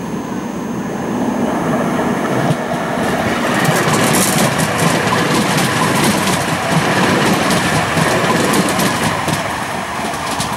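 An electric tram rolls past close by on its rails.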